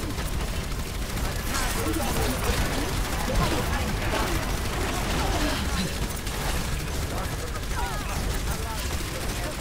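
Rapid energy shots fire from a weapon.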